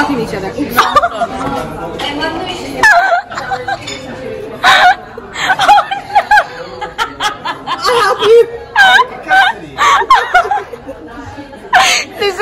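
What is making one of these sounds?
Young women talk and laugh with animation close by.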